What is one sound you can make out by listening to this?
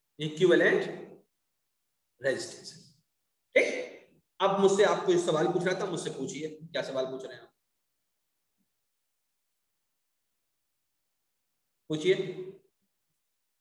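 A man speaks calmly through a microphone, explaining in short phrases.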